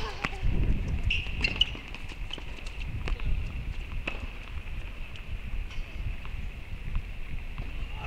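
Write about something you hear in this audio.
Tennis balls are struck with rackets, with sharp pops echoing outdoors.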